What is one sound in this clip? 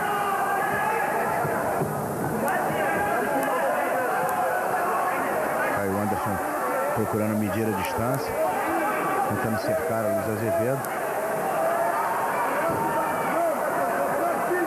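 A crowd murmurs and shouts steadily in a large hall.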